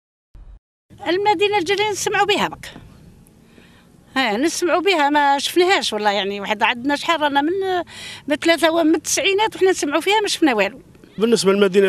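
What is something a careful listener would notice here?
An elderly woman speaks calmly into a microphone outdoors.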